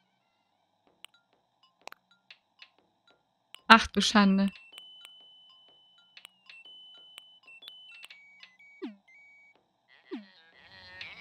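Soft game menu blips sound as a cursor moves between options.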